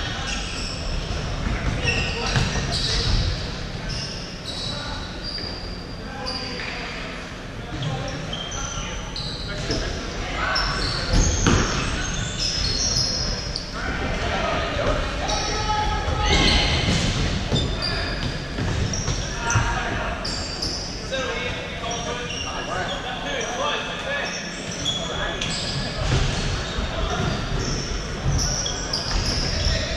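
Men shout and call out to each other during a game.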